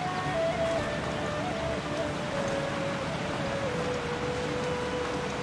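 Wind rushes steadily past a gliding figure.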